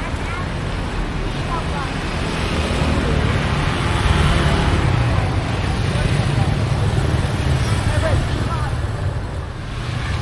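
Motorbike engines buzz as they ride by close.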